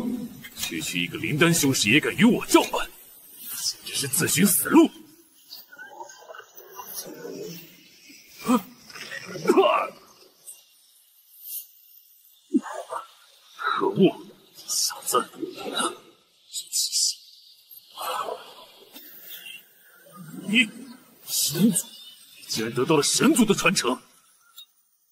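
A young man speaks tauntingly and angrily.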